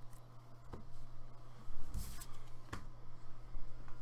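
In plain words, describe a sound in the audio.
Cards are set down on a table with soft taps.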